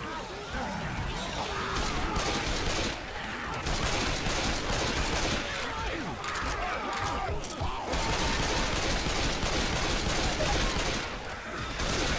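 Zombies growl and shriek nearby.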